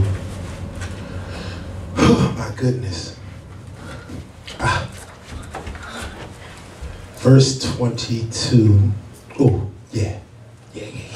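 A man speaks with emphasis into a microphone, heard through loudspeakers in an echoing room.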